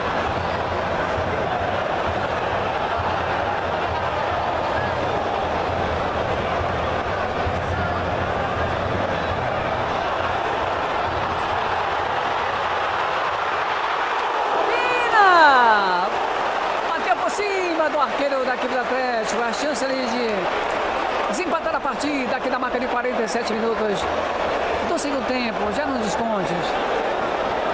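A stadium crowd murmurs and calls out in the open air.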